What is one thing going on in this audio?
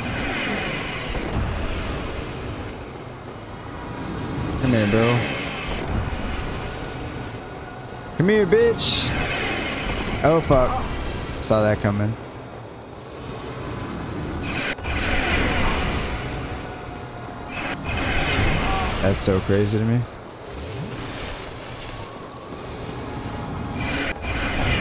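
Magic bolts whoosh and crackle.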